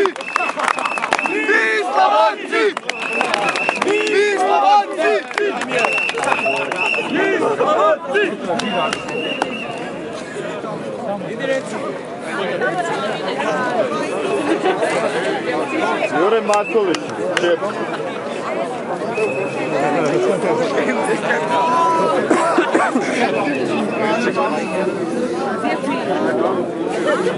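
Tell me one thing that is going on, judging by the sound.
A crowd of men and women talks and chatters nearby outdoors.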